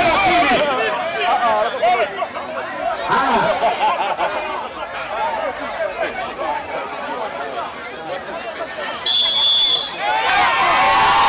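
A crowd of men and women shouts encouragement outdoors.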